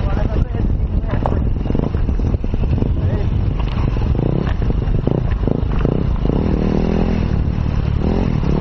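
A motorcycle engine revs up and down close by.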